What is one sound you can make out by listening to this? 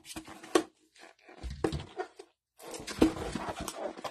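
Trading cards slide and rustle against each other.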